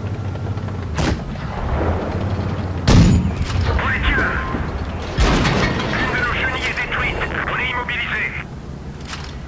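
Shells strike armour with sharp metallic clangs.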